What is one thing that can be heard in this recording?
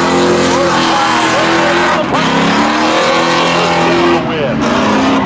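A car engine roars loudly at high revs.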